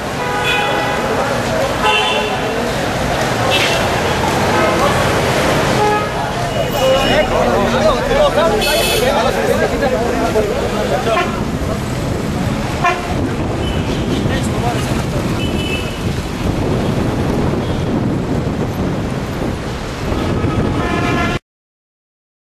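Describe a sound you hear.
A crowd of men chants and shouts outdoors.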